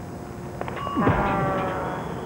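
A cartoon figure zooms away with a sudden whoosh.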